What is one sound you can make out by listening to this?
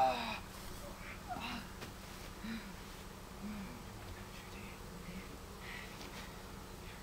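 Young men grunt and shout nearby.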